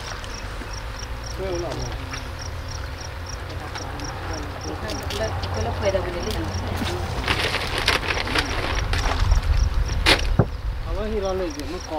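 Water laps against rocks.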